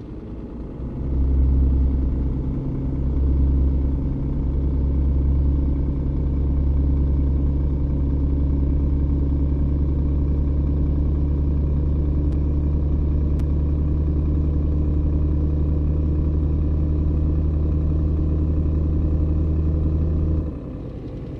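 A six-cylinder diesel truck engine drones as the truck accelerates.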